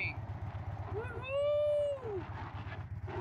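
A dog lets out a short whining howl.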